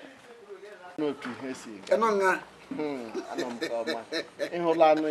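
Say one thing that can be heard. An elderly man speaks and laughs softly nearby.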